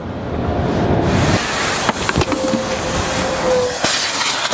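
A vacuum hose sucks air with a steady rushing roar.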